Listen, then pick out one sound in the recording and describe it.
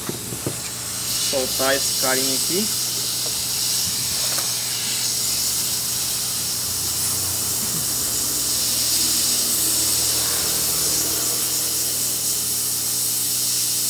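A hot air gun blows with a steady, hissing roar.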